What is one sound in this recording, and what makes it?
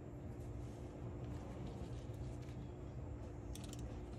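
A cloth rustles as it is laid down.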